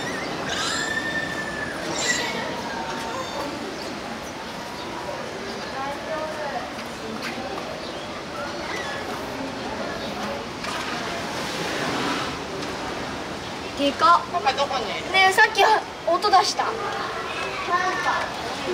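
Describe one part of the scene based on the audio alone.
A crowd of adults and children chatters and exclaims nearby in an echoing space.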